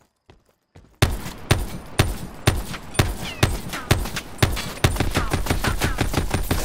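A machine gun fires loud rapid bursts indoors.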